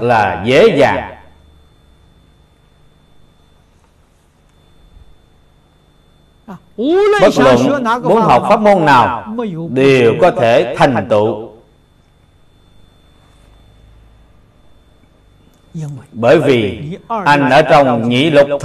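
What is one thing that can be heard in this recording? An elderly man speaks calmly and closely into a microphone, with long pauses.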